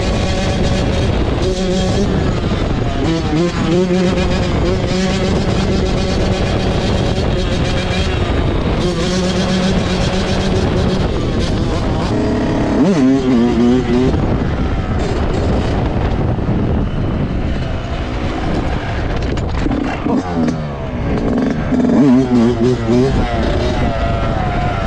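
A dirt bike engine revs hard and close, rising and falling in pitch.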